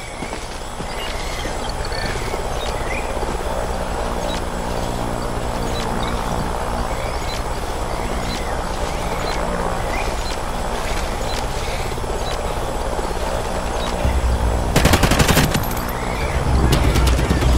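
A fire crackles and rumbles nearby.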